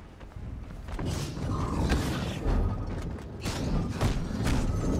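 Heavy punches thud against a robot enemy.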